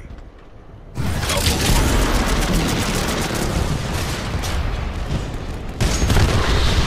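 A barrage of rockets fires in rapid bursts.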